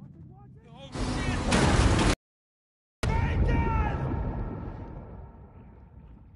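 A boat crashes violently with a loud roar.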